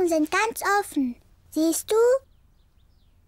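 A young girl speaks in a worried voice.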